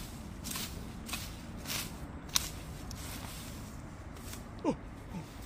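A hoe chops into grassy soil in a few separate strokes.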